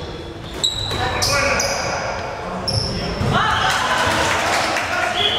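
Players shout to each other across an echoing sports hall.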